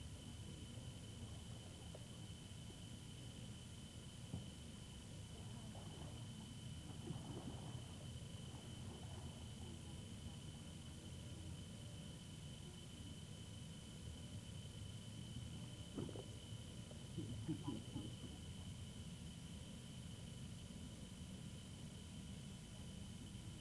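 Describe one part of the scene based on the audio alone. Water splashes and laps as a boy paddles on a float.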